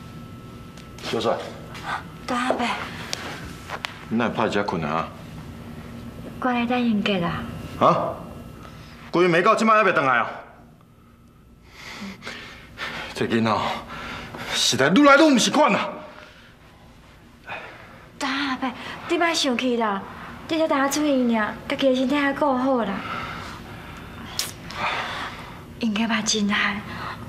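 A middle-aged man speaks in a concerned, firm voice close by.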